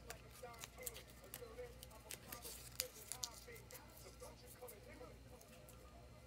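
Paper tape crinkles and rustles in someone's hands.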